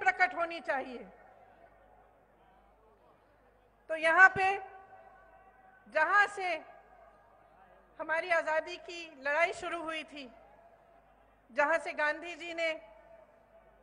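A woman speaks forcefully into a microphone over loudspeakers, in bursts with pauses, echoing outdoors.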